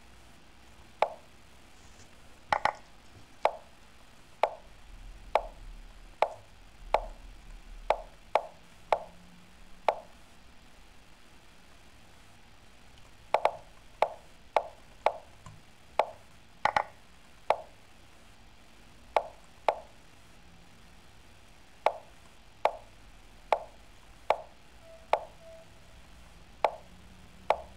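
Chess pieces click sharply onto the board in a computer game, one move after another.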